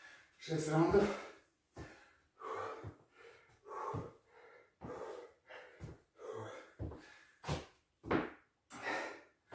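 A man coughs repeatedly in a small echoing room.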